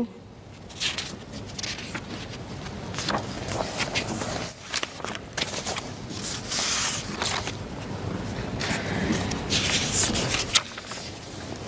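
Footsteps walk across a carpeted floor.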